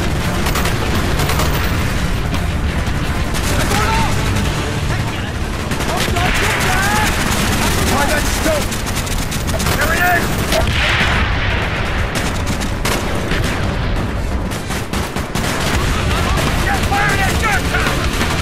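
A rifle fires short bursts of loud shots.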